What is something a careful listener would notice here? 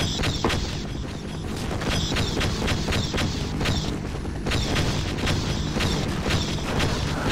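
A helicopter's rotor thuds and roars overhead.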